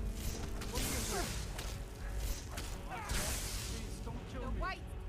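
Magic lightning crackles and hisses in short bursts.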